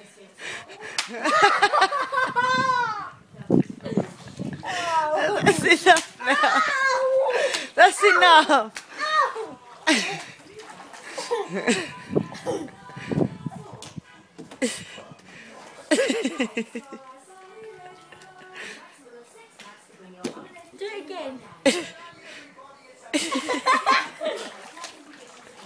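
Water splashes in a paddling pool.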